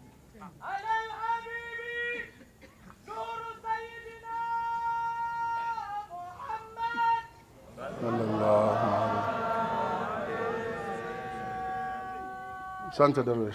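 A man chants in long, held sung tones through a microphone.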